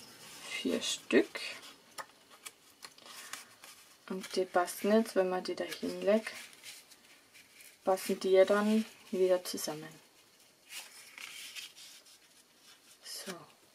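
Paper rustles and slides softly.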